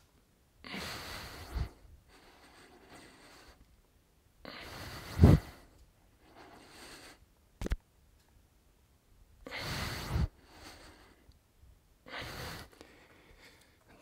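A man breathes hard in loud bursts while exercising.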